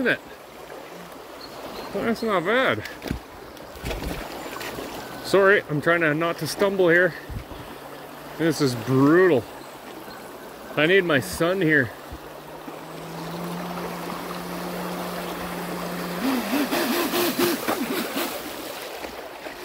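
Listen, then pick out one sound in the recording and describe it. Shallow water ripples and burbles over stones.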